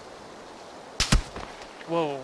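A single rifle shot cracks nearby.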